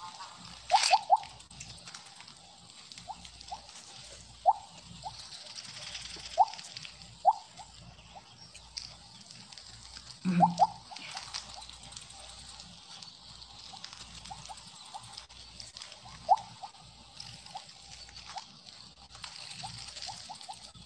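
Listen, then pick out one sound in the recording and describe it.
Short bright electronic blips chime from a video game, again and again.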